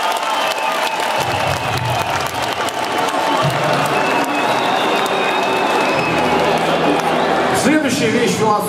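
A large crowd cheers and screams in a big echoing arena.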